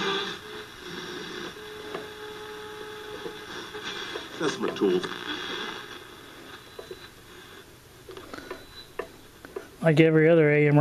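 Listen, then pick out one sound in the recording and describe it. An old radio hisses and whistles with static as its dial is turned.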